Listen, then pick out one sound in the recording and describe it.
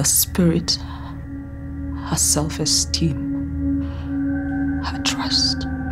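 A young woman sings with emotion.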